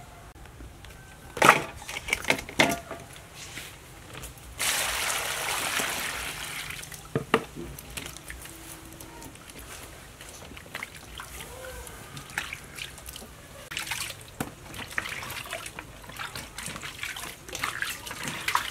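Vegetables knock against the side of a metal bowl.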